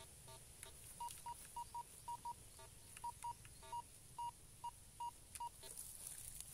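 A metal detector beeps in short, high tones.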